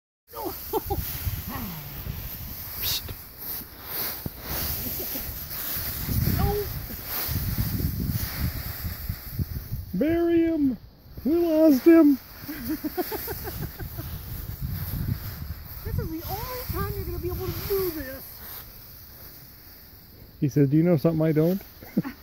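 Dry leaves rustle and crunch as a person and a puppy romp through a leaf pile.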